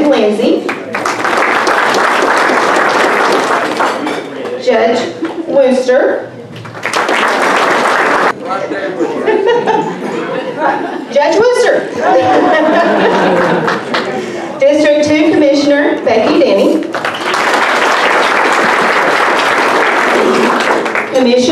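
A crowd applauds loudly in a room.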